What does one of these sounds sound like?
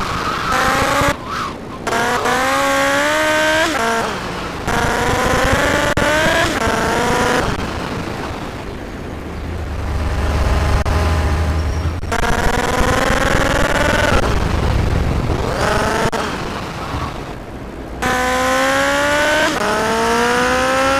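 A motorcycle engine revs up and down as the bike speeds along.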